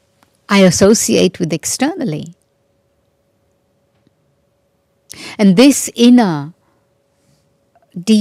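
An elderly woman speaks calmly into a microphone, pausing between phrases.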